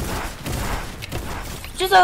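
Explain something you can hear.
Gunshots ring out in quick succession.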